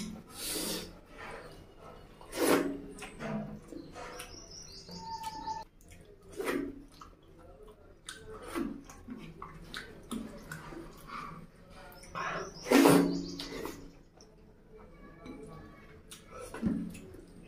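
Fingers squelch through wet food.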